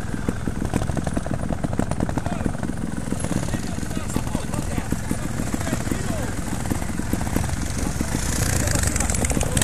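A motorcycle engine putters and pops close by.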